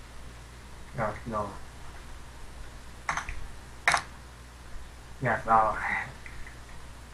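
A young woman speaks briefly and calmly over an online call.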